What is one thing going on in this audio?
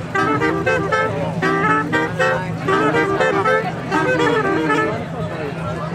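Several men play a bright tune on small wind instruments.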